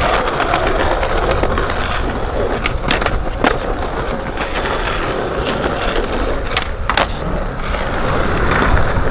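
Skateboard wheels roll and rumble over smooth pavement.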